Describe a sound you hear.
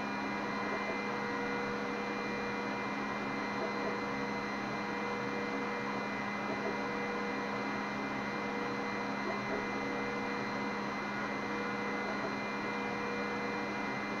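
A laser head whirs back and forth in quick short strokes.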